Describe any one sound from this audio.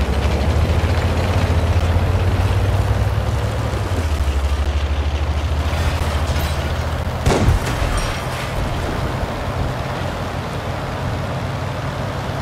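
A tank engine rumbles low and steady as the tank drives along.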